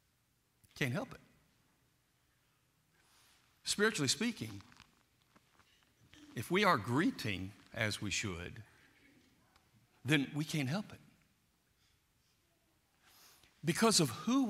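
A man preaches through a microphone in bursts, with pauses between phrases, in a large echoing hall.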